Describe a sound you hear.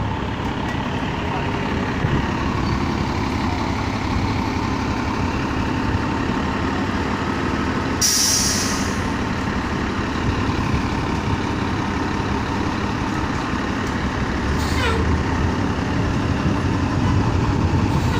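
A city bus engine idles with a low steady rumble.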